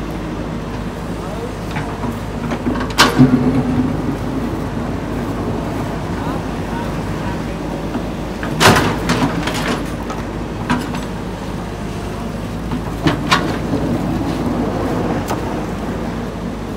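A diesel excavator engine rumbles steadily close by.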